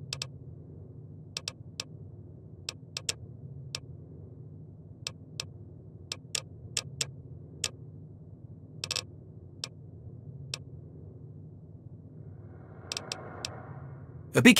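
Short electronic clicks sound as menu items are selected.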